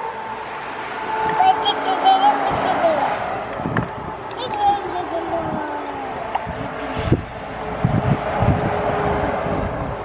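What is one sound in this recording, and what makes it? Water splashes as a small girl's hand swishes through a basin.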